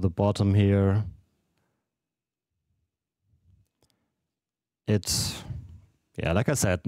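A man speaks into a close microphone in short bursts.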